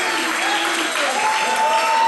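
A woman shouts with excitement.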